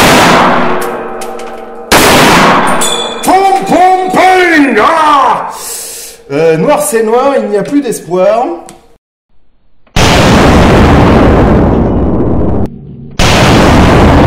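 A rifle fires loud shots that ring out in a small room.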